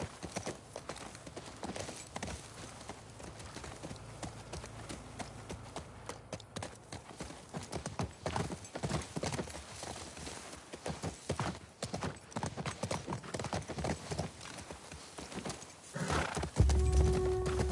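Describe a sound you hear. Horse hooves clop as a horse walks.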